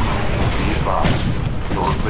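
Footsteps thud up a flight of stairs.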